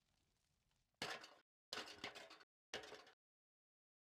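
Boots clank on a metal ladder.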